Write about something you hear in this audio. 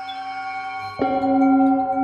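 A mallet strikes a singing bowl, which rings out loudly.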